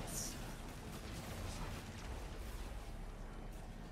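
Energy blasters zap and crackle in a fast fight.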